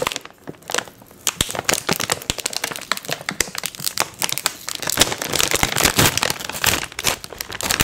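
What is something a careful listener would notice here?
A crinkly snack bag rustles and crackles close up.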